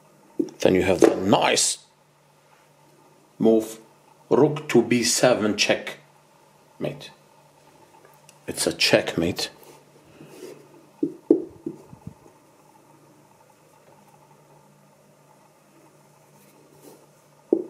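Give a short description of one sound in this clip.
A wooden chess piece knocks softly as it is set down on a wooden board.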